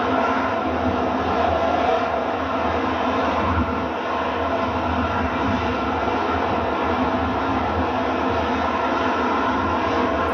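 A jet engine roars loudly and steadily as a jet hovers overhead.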